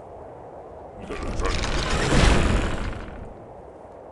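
A trebuchet swings its arm and hurls a boulder with a whoosh.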